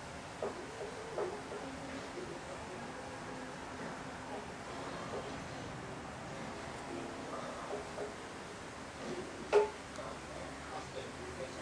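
Wind blows steadily outdoors through trees.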